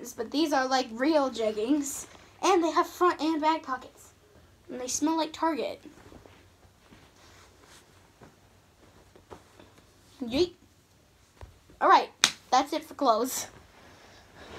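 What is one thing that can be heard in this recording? A young girl talks with animation close by.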